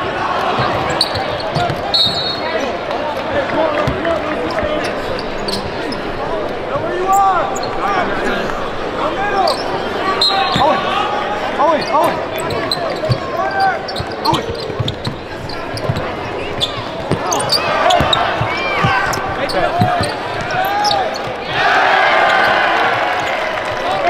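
A crowd murmurs and cheers throughout.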